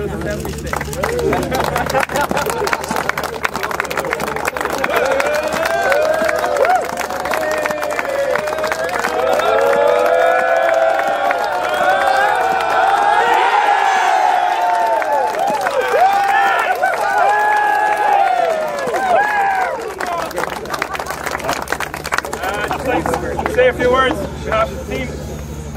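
A crowd of people claps and cheers outdoors.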